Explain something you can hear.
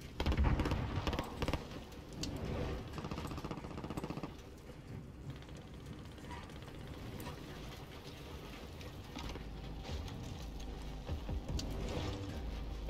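A fire crackles and roars close by.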